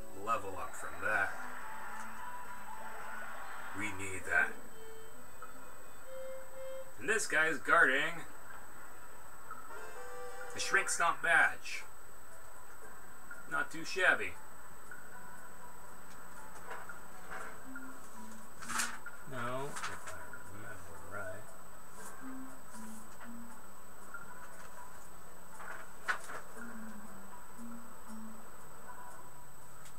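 Video game music plays from a television speaker.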